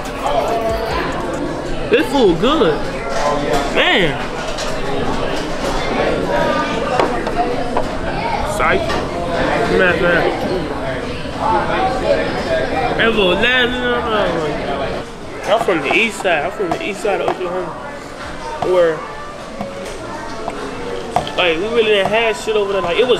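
A teenage boy talks casually, close by.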